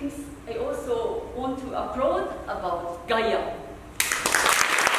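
A young woman speaks clearly into a microphone.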